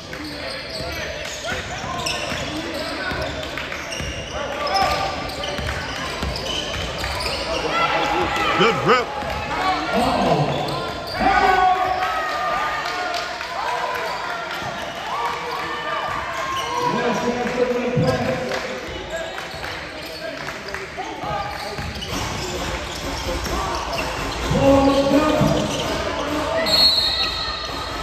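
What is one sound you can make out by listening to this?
A crowd of spectators and players chatters and calls out in the background.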